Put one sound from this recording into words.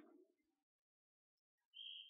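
A man talks quietly.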